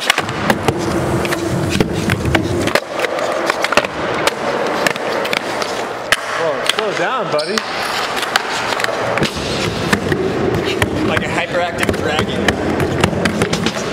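Skateboard wheels roll and rumble on a concrete floor in a large echoing hall.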